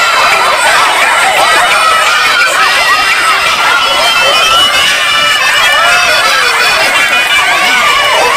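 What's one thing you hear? A crowd of girls shouts and shrieks excitedly outdoors.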